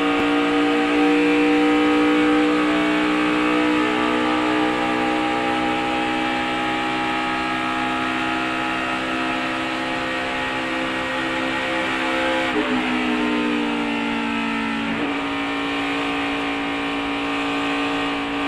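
A race car engine roars at high, steady speed close by.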